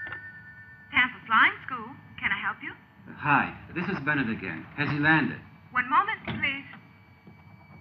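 A woman talks on a telephone, close by.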